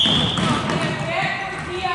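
A man calls out loudly to players.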